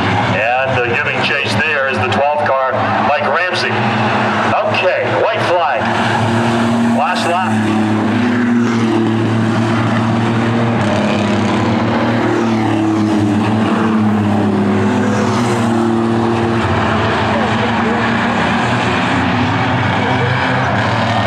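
Race car engines roar loudly around a track.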